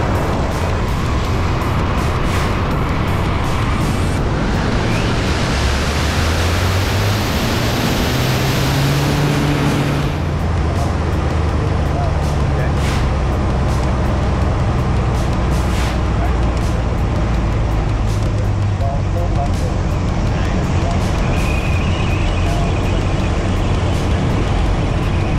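A small plane's engine roars loudly, its pitch rising and falling.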